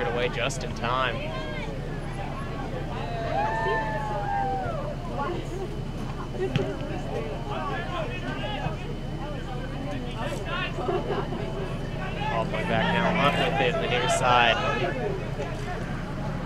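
Young men shout to each other from a distance outdoors.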